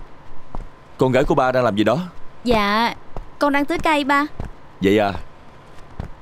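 A man speaks loudly with animation nearby.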